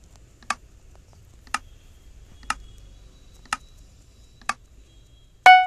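A game countdown beeps sharply once each second.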